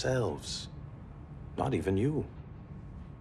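A man speaks in a low, calm voice, close by.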